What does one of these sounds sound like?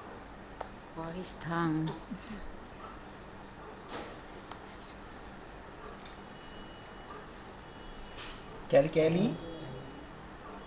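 A baby fusses and whimpers briefly, close by.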